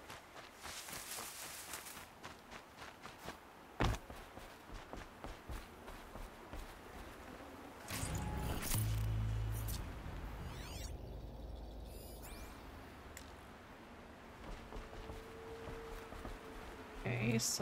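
Footsteps thud quickly on wooden stairs and boards.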